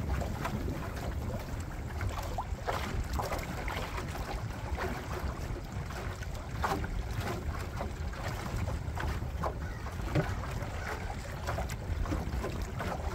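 Small waves lap and splash against a boat's hull.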